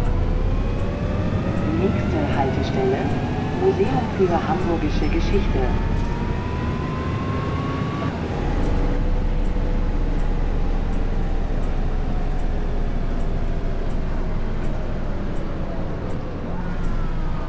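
A bus engine drones steadily, its whine rising as it speeds up.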